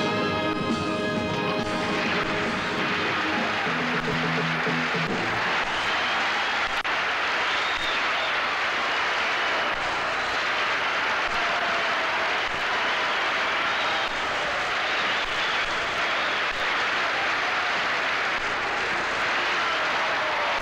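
A band plays lively music.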